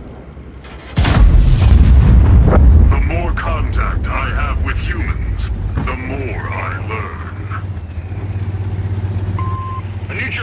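A tank engine rumbles steadily as the tank drives.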